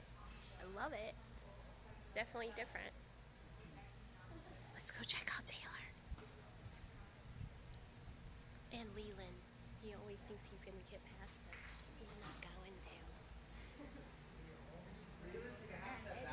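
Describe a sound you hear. A young woman talks close to the microphone with animation.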